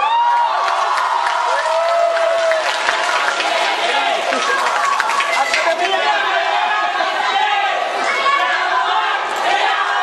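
A group of young men and women sing together in a large echoing hall.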